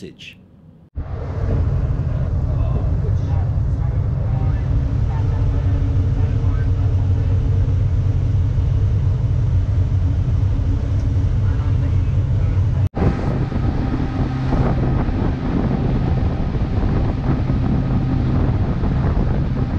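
Water splashes and rushes against a moving boat's hull.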